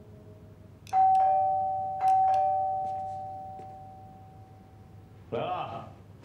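A doorbell chimes twice.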